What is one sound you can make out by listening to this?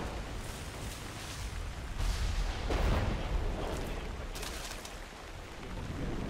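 Wind blows through palm trees outdoors.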